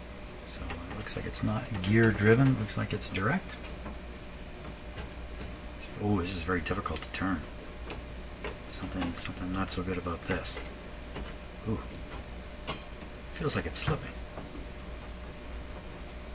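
A knob turns with faint scraping clicks.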